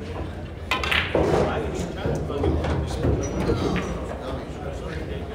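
Pool balls clack together and roll on the table.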